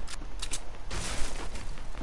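A gun fires sharp shots.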